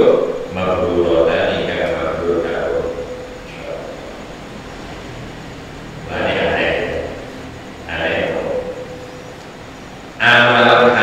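An elderly man speaks calmly into a microphone, in phrases with pauses.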